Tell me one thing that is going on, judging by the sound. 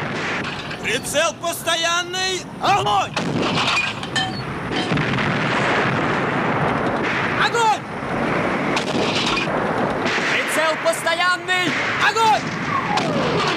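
A young man shouts urgently nearby.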